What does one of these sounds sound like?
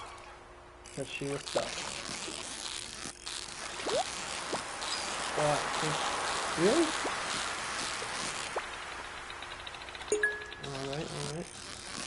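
A fishing reel whirs as a fish is reeled in.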